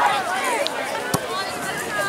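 A soccer ball is kicked with a short thud.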